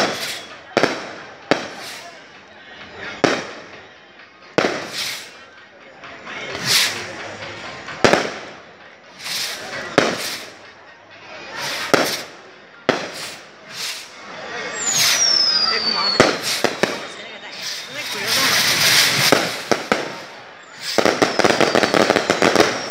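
Fireworks bang and boom overhead, echoing.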